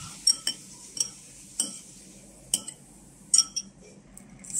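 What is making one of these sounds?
A metal spoon clinks against a ceramic bowl while stirring.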